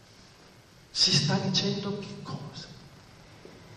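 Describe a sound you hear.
An elderly man speaks briefly through a microphone.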